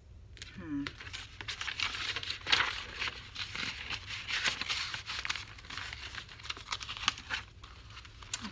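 Paper rustles and crinkles as pages are handled up close.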